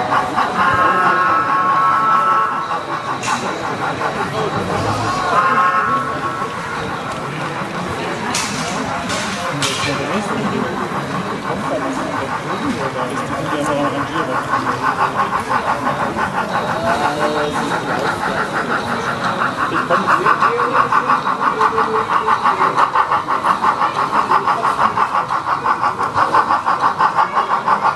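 People chatter in the background of a large echoing hall.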